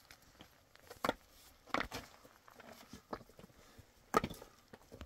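Concrete blocks knock against each other.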